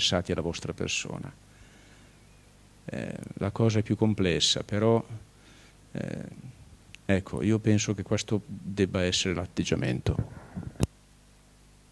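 An elderly man speaks calmly into a microphone, heard through a loudspeaker in a large hall.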